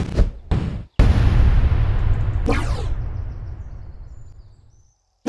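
A loud zapping blast rushes through and slowly fades.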